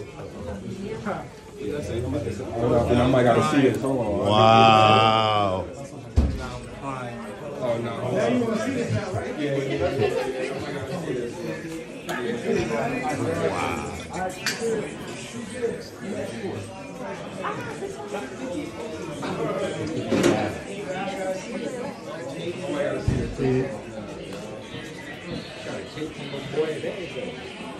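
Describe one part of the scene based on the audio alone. A group of people talk and cheer at once.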